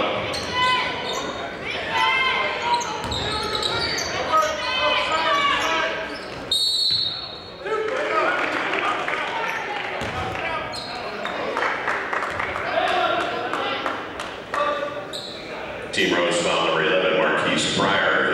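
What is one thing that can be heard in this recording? A crowd murmurs and calls out in an echoing gym.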